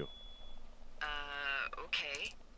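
A handheld radio gives off a buzzing tone.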